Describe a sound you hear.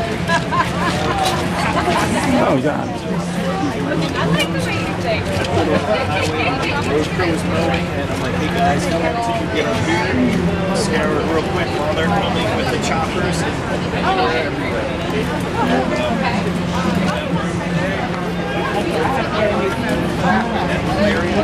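A crowd of men and women chatter all around, close and far.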